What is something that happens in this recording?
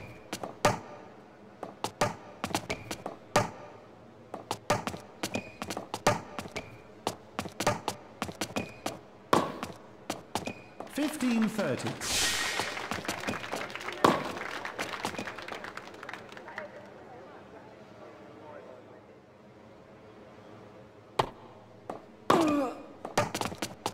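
Tennis balls are struck back and forth with rackets, with sharp pops.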